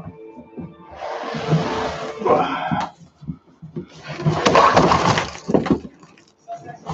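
Plastic wrap crinkles as a man handles wrapped parts.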